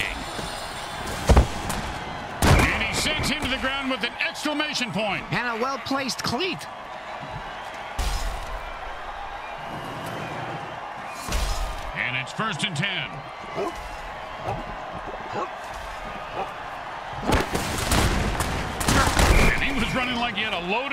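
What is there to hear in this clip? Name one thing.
Football players crash together in hard tackles.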